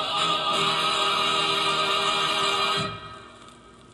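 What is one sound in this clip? Music plays from a record player and then stops suddenly.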